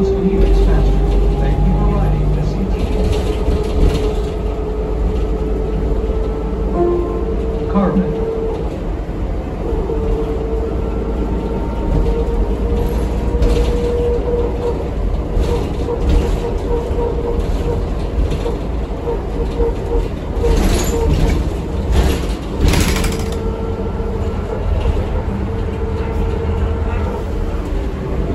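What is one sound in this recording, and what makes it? The bus body rattles and clatters over bumps.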